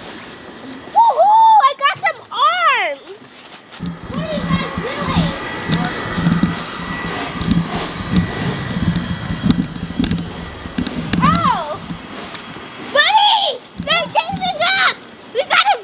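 A young child squeals and shouts excitedly outdoors.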